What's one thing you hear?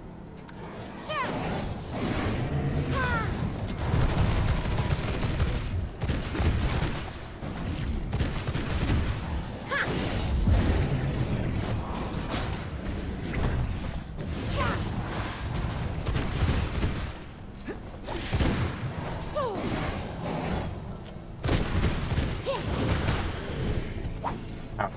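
Blows land with heavy thuds and crunches.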